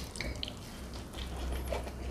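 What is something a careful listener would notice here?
A man bites into a burger close to the microphone.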